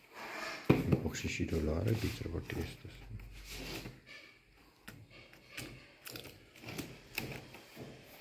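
A plastic box knocks and rattles as hands handle it.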